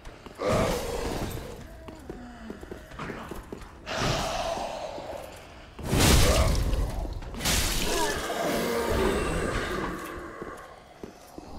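Sword blows strike and clang against enemies.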